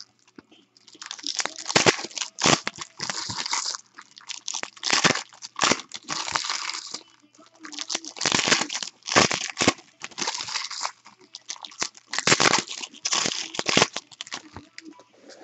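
Foil wrappers crinkle and rustle as they are torn open by hand.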